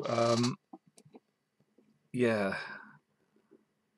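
A socket lever clicks as chips are lifted out.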